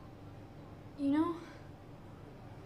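A woman speaks quietly, close by.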